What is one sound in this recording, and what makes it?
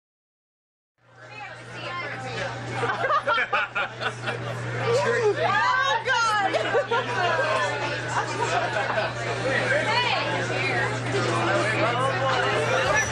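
A crowd of men and women chatters and laughs loudly all around.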